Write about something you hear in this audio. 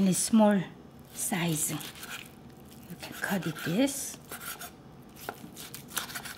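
A knife cuts through meat and taps a wooden board.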